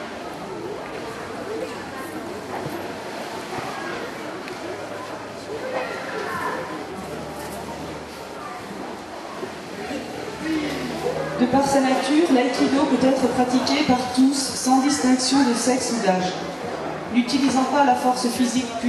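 A crowd murmurs softly in the background.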